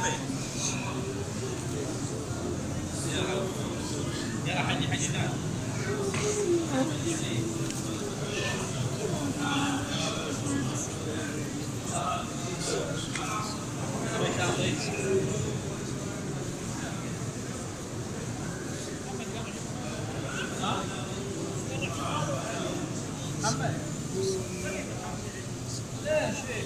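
A dense crowd of men murmurs and talks all around in a large echoing hall.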